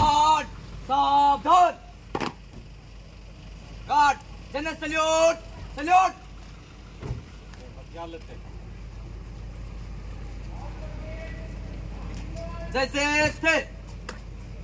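Young men shout drill commands loudly outdoors.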